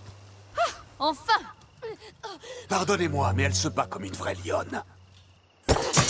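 A woman speaks with satisfaction.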